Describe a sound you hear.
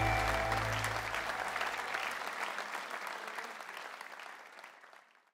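A large audience applauds in a big echoing hall and the applause slowly fades.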